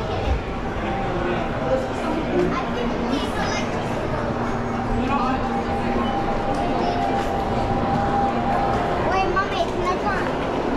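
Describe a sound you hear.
A crowd of people chatters all around, indoors.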